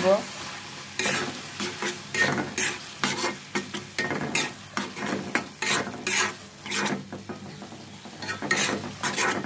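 A spatula scrapes and knocks against a pan.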